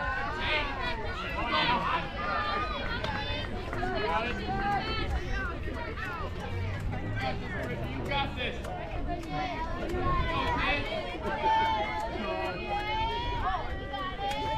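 Several people chatter and call out nearby outdoors.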